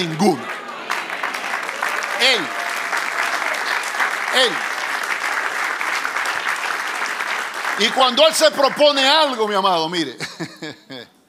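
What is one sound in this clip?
A crowd applauds and cheers in a large room.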